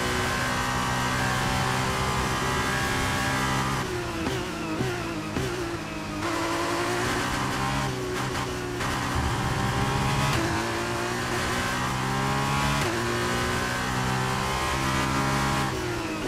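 A racing car engine roars at high revs, dropping in pitch for braking and rising again as it speeds up.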